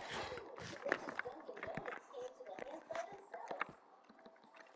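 A zombie groans low and hoarsely.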